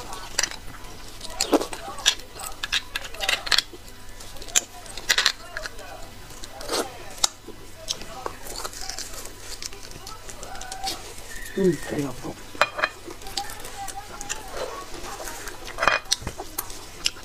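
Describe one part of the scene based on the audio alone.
A young woman chews and slurps food wetly, close to a microphone.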